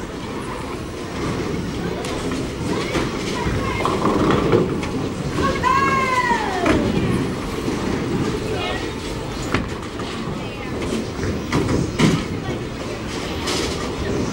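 A steady din of rolling balls and falling pins fills a large echoing hall.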